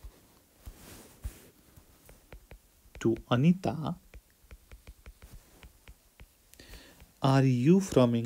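A stylus taps and scratches on a glass tablet.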